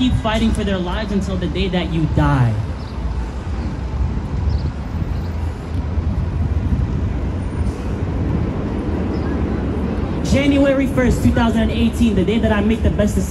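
A young man speaks with feeling into a microphone, heard through a loudspeaker outdoors.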